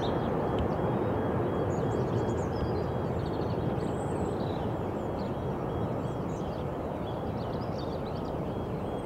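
A jet airliner's engines roar steadily overhead as it climbs away, slowly fading.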